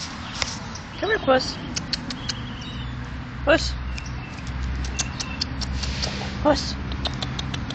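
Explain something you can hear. A cat meows loudly a few times close by.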